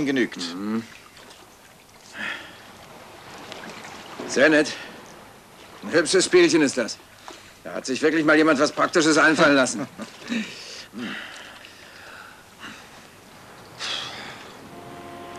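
An elderly man speaks tensely.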